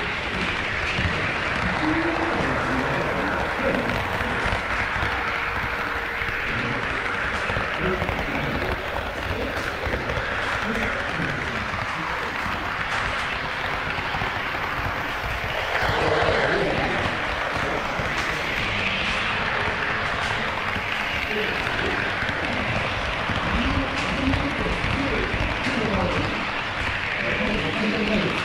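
A model train rattles steadily along its track.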